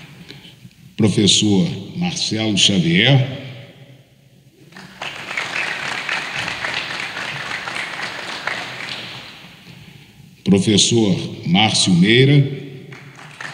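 A man speaks loudly through a loudspeaker in a large echoing hall.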